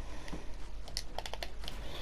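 Wooden building pieces snap into place in a video game.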